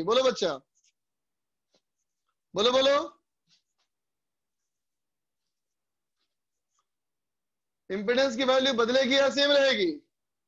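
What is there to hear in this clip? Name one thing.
A man speaks in short bursts, lecturing calmly and close by.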